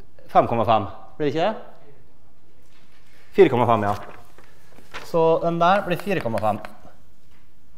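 A man lectures in short, calm phrases.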